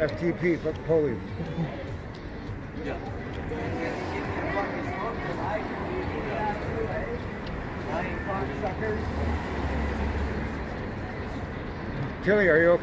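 Traffic rumbles past on a city street.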